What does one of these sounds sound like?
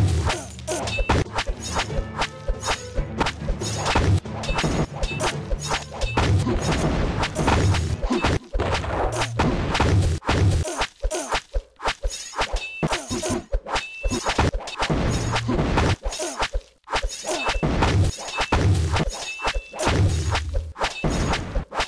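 Game soldiers clash with swords in quick, repeated hits.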